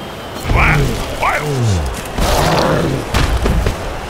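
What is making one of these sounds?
A heavy thud sounds as a large creature crashes to the ground.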